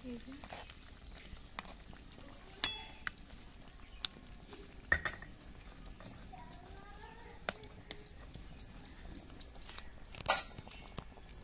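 A spatula scrapes and clinks against a metal pot.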